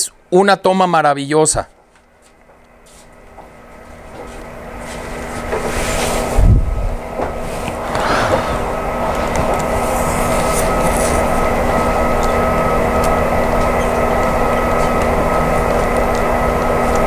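Model train wheels click and rattle along the track.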